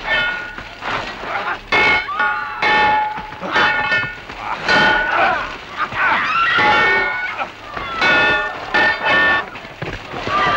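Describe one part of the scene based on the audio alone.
Swords clash with sharp metallic clangs.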